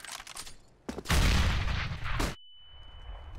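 A smoke grenade bursts with a loud, rushing hiss.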